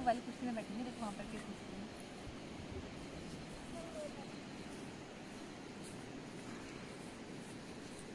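A young woman laughs and talks nearby.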